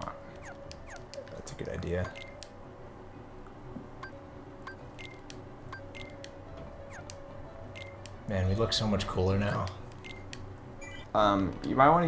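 Short electronic menu blips chime one after another.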